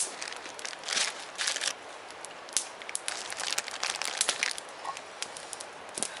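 A campfire crackles and pops outdoors.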